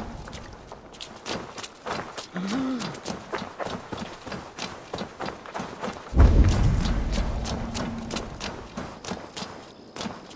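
Footsteps thud quickly on a dirt path as a man runs.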